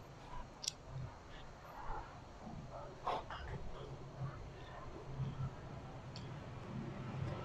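A young man chews food noisily up close.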